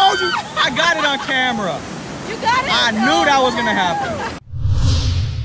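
Surf washes over rocks.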